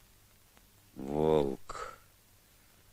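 A boy says a single word quietly.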